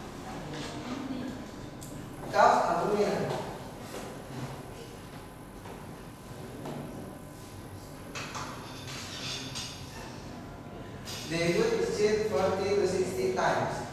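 A young man speaks to a class in a room with some echo, pausing now and then.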